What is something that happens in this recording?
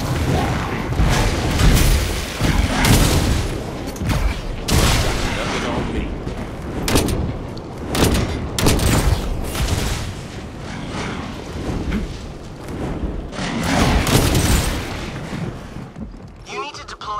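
Gunfire and crackling electric blasts go off in bursts in a video game.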